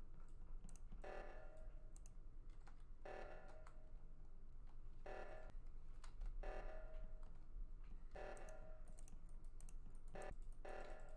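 An alarm blares in loud, repeated blasts.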